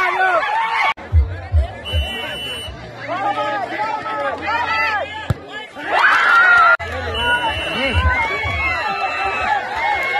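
A large outdoor crowd shouts and cheers loudly.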